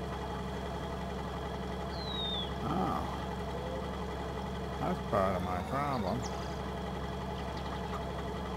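A large diesel engine idles with a steady low rumble.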